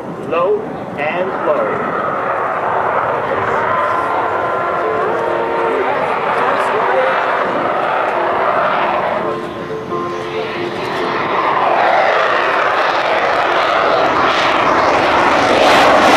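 A jet engine roars overhead and grows louder.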